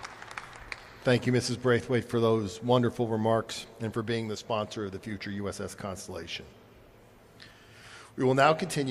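A man speaks into a microphone in a large hall.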